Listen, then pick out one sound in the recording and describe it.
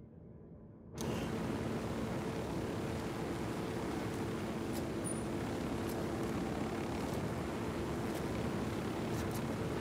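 A helicopter's rotor thumps and its engine roars loudly.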